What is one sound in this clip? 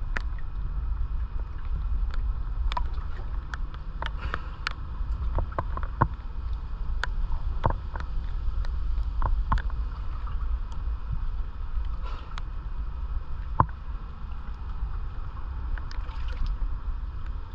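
Water laps and splashes gently against rock close by.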